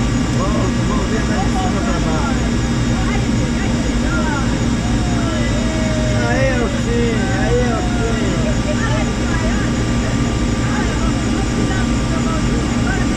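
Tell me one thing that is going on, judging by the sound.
Helicopter rotor blades thump rapidly overhead.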